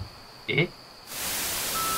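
Static hisses loudly.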